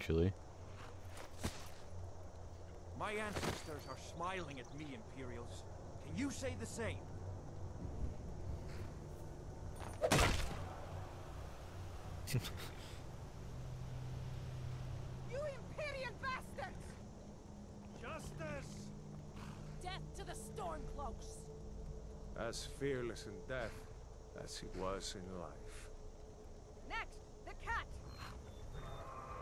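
A young man talks close to a microphone, with animation.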